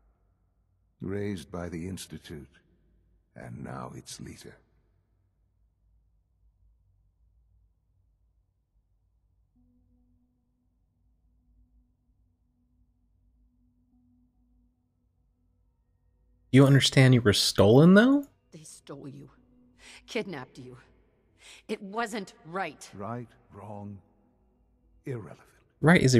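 A young man talks close to a microphone.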